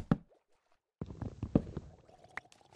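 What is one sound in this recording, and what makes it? Wooden blocks break with short dull knocks.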